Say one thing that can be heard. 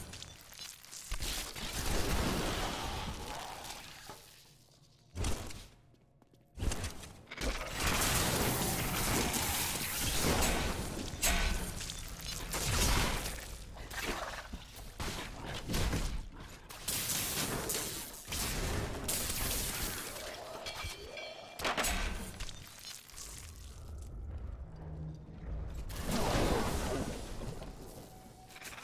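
Spells and weapon hits crash and boom in rapid bursts.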